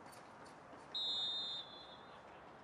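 A referee's whistle blows one short, sharp blast.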